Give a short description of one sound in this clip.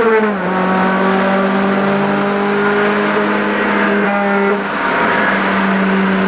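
Tyres roar on the road at speed.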